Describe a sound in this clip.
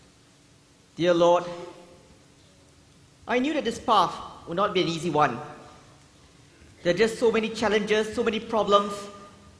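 A man speaks with emotion in an echoing hall.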